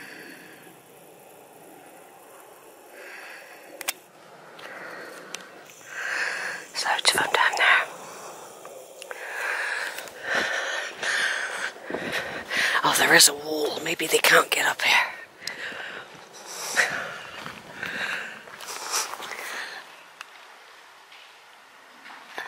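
Pigs grunt softly in the distance.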